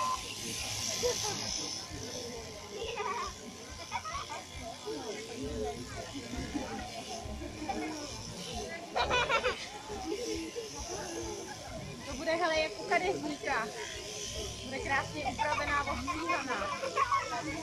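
Electric shears buzz steadily through a sheep's fleece.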